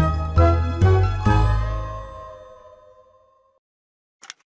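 A cheerful game jingle plays for a new reward.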